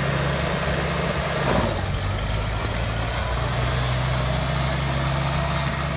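Tractor tyres crunch over gravel.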